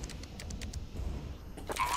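A timer device beeps in quick, even ticks.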